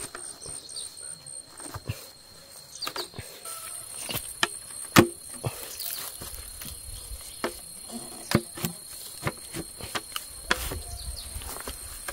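Hollow bamboo pieces knock and clatter against each other.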